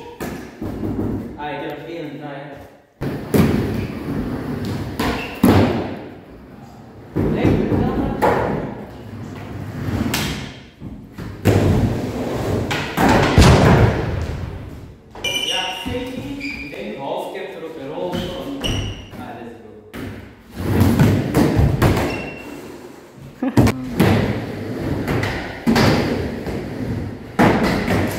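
Skateboard wheels roll and rumble over a wooden ramp.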